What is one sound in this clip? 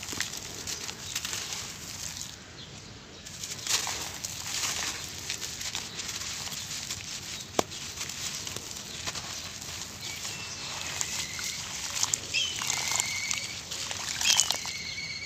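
Hands scrape and scoop gritty wet sand close by.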